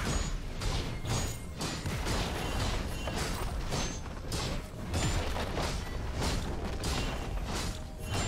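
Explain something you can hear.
Magical blasts and weapon clashes burst again and again in a fast fight.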